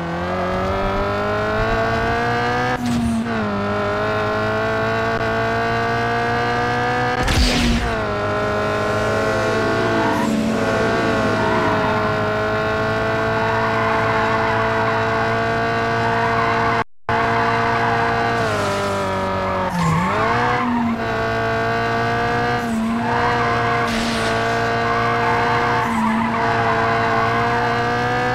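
A racing car engine roars steadily at high revs, dropping briefly as gears shift.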